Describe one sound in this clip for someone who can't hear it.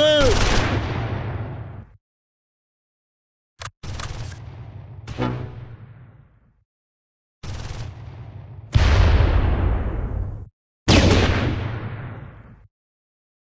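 Heavy explosions boom and rumble away, one after another.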